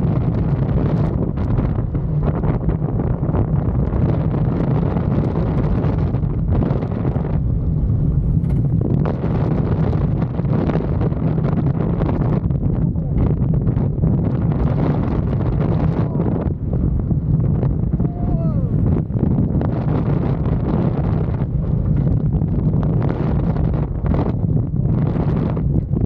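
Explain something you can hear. Roller coaster wheels rumble and clatter along the track.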